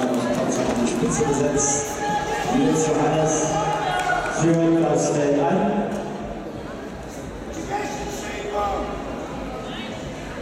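Spectators shout and cheer loudly in a large echoing hall.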